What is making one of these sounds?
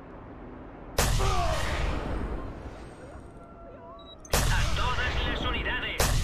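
A rifle fires a loud shot that echoes away.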